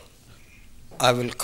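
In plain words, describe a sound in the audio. A man speaks briefly into a microphone, heard through a loudspeaker.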